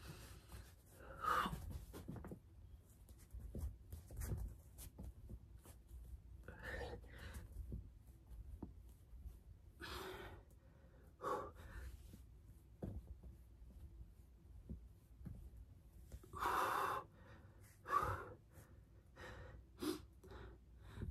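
A young woman exhales hard in short bursts close by.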